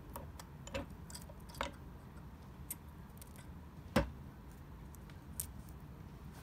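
A metal tool scrapes and clinks against metal.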